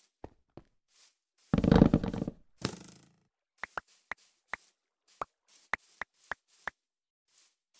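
Blocks crack and break with crunching thuds.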